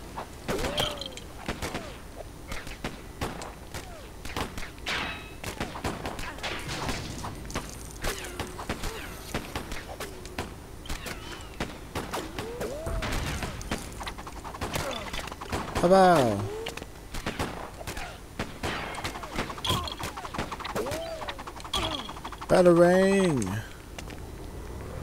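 Cartoonish punches and clatters of a video game fight sound rapidly.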